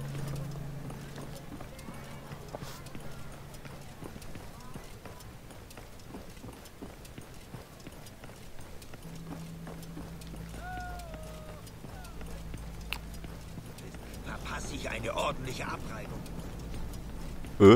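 Heavy footsteps tread on stone.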